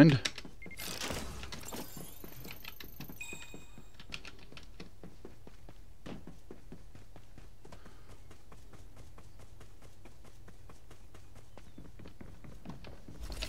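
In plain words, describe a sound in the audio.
Footsteps thud on wooden and stone floors.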